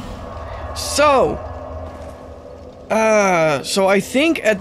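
A man exclaims loudly and excitedly into a close microphone.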